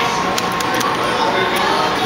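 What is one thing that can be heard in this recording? A finger presses an elevator call button with a soft click.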